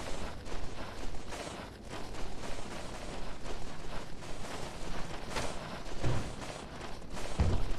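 A young woman talks into a close microphone.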